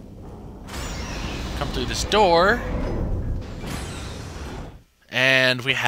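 A heavy metal hatch rumbles and whirs as it turns.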